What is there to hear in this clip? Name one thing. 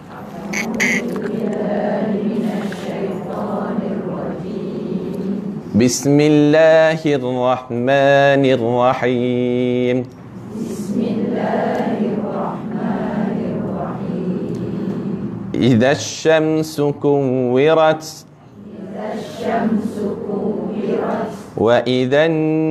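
A man talks calmly through a microphone.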